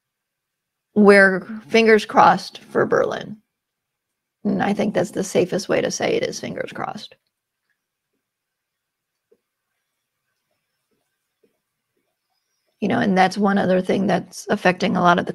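A woman speaks calmly over an online call, with pauses.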